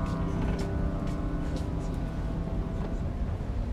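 A choir sings a long held chord that echoes in a large hall and then fades.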